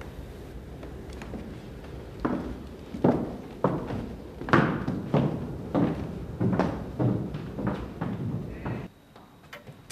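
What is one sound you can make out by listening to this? High heels clack on hard steps.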